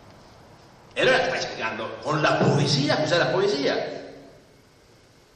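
An elderly man speaks into a microphone in a low, deliberate voice.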